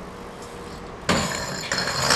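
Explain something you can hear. Bike tyres land with a thud on concrete.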